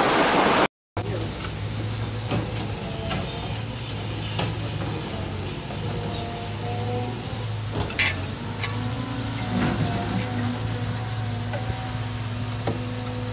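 An excavator engine rumbles steadily.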